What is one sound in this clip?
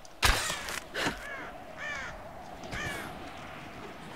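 A crow caws.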